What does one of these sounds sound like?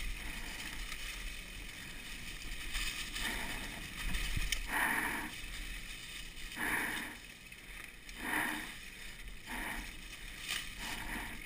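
Bicycle tyres crunch and rustle over dry leaves.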